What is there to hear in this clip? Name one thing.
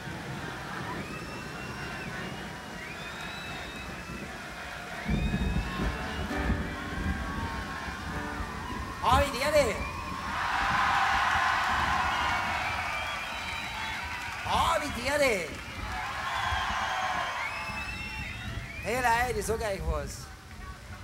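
A large outdoor crowd cheers and whistles.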